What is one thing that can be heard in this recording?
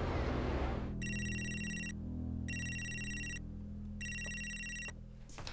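A mobile phone rings.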